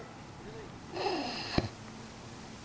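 A dog yelps briefly.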